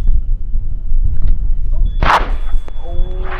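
A small rocket motor fires with a short whoosh.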